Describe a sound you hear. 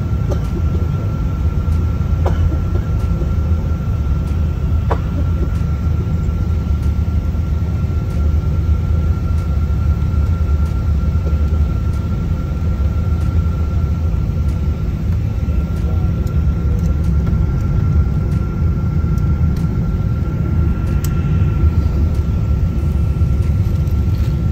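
Jet engines roar steadily, heard from inside.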